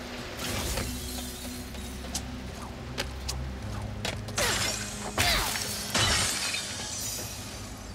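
Bolts scatter and jingle with bright tinkling.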